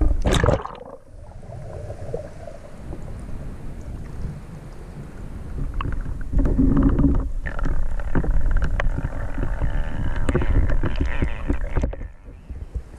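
Water rumbles and gurgles, heard muffled underwater.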